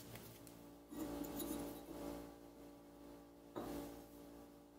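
A metal blade taps down on a wooden bench.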